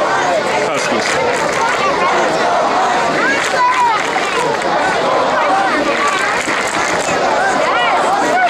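A large outdoor crowd chatters and calls out steadily in the distance.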